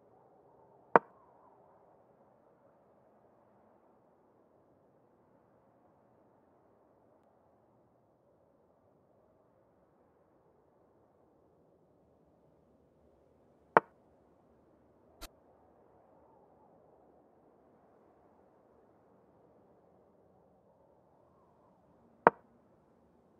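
A chess piece lands on the board with a sharp click.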